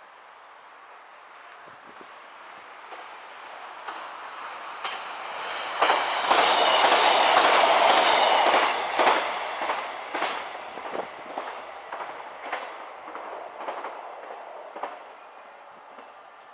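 A train approaches, rumbles past close by and moves away.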